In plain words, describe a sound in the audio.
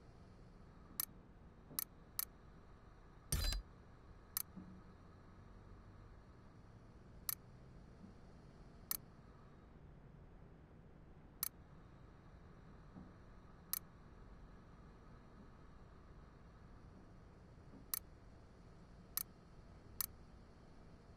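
Short electronic menu clicks tick now and then.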